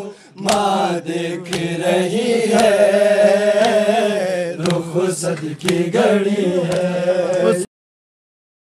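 A man chants loudly into a microphone, heard through loudspeakers.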